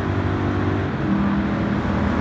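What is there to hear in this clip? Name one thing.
A race car engine shifts up a gear with a brief drop in pitch.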